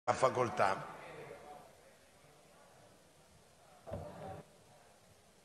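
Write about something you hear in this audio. A man speaks briefly through a microphone in a large echoing hall.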